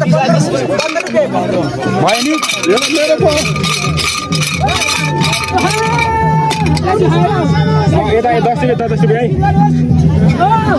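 Several men talk and call out with animation close by, outdoors.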